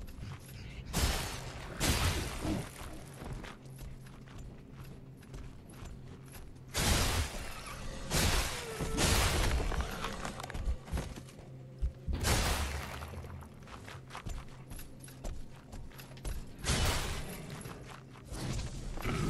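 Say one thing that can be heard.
A heavy weapon whooshes through the air.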